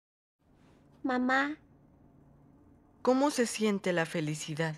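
A young woman speaks softly and with emotion, close by.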